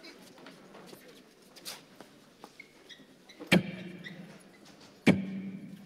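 A crowd of people murmurs and calls out in the background.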